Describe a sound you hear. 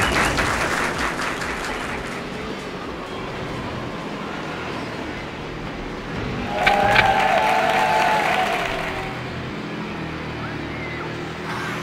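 A speedboat engine roars steadily.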